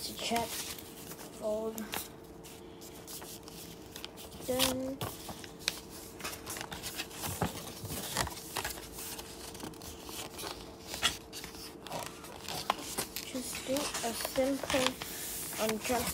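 Paper rustles and crinkles close by as it is folded.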